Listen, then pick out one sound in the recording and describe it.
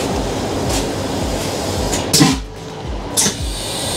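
A sliding door opens with a thud.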